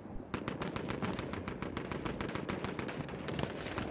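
An explosion booms and rumbles nearby.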